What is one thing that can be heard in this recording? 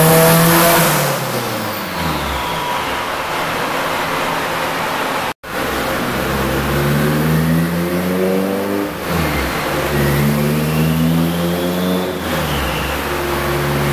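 A turbo whistles and hisses as the engine revs drop.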